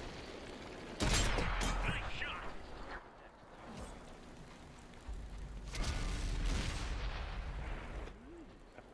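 Shells explode with loud blasts.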